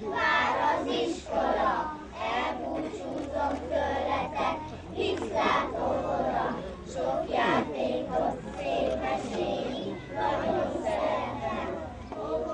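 A group of young children sing together outdoors.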